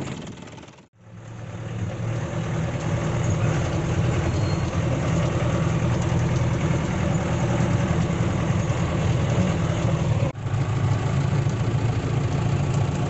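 A vehicle engine drones steadily while driving.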